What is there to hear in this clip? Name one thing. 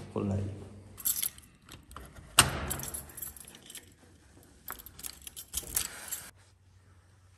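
Metal lock picks scrape and click inside a door lock.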